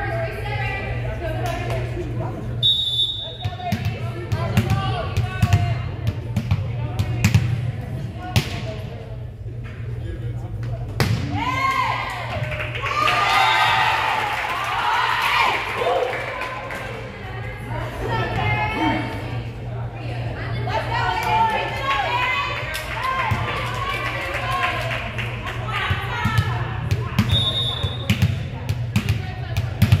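A volleyball is struck with sharp smacks in a large echoing gym.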